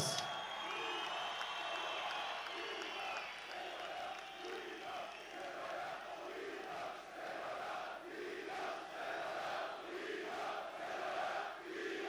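A large crowd chants in a rhythm.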